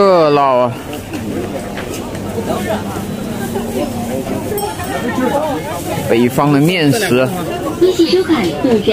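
A crowd of men and women chatters close by.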